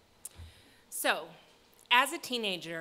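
A woman sings loudly and high through a microphone.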